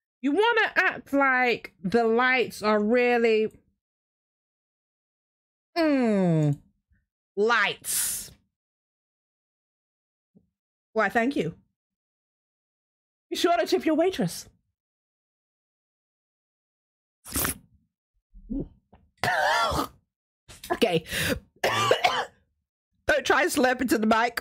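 A young woman talks with animation in bursts into a close microphone, with pauses in between.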